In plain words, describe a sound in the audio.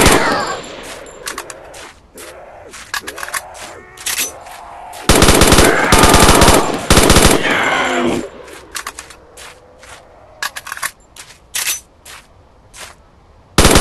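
Single gunshots crack now and then.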